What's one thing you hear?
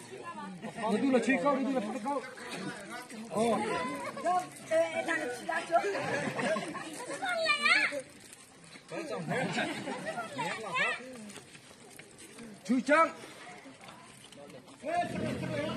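A crowd of children and adults chatters and shouts outdoors.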